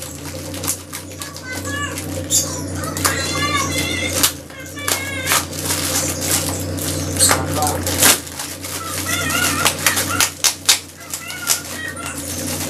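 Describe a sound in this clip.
Plastic wrapping crinkles and rustles under hands.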